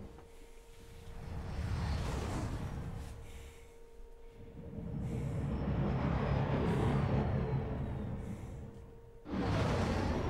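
A spaceship engine roars in deep, rising and falling swells.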